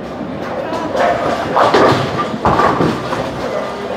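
Bowling pins crash and clatter.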